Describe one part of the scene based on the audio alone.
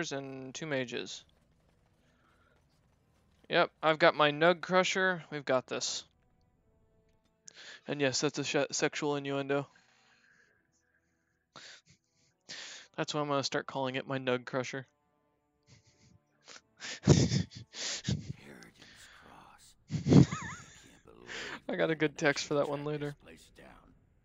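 A young man talks with animation close to a microphone, in short bursts with pauses.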